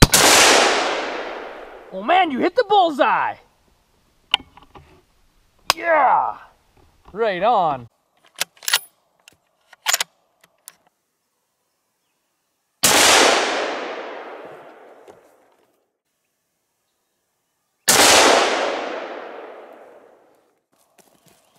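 A rifle fires loudly, and each shot echoes away outdoors.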